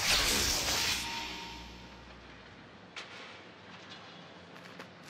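Footsteps walk steadily on hard ground.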